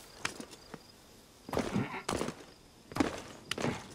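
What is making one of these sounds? Hands and feet scrape and thump while climbing a wall.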